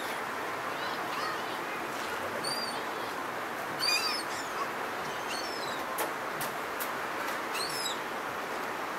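Seagulls call overhead outdoors.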